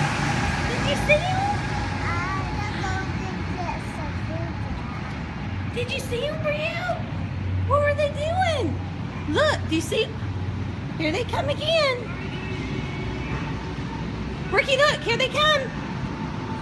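Small children call out in high voices nearby.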